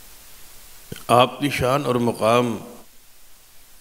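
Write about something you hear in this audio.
An elderly man speaks forcefully into a microphone through a loudspeaker.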